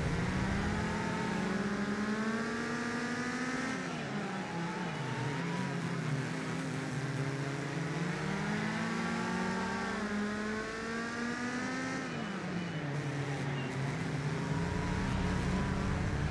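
A race car engine roars, rising in pitch as it speeds up and dropping sharply as it slows for corners.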